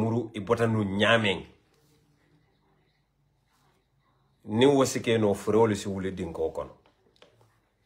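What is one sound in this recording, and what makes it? A man speaks calmly and close to a phone microphone, with pauses.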